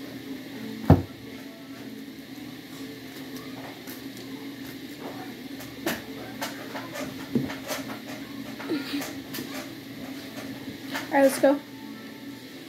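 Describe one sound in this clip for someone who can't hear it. A young boy talks to the microphone close by.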